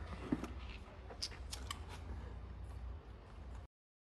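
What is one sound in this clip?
A man blows air through his lips.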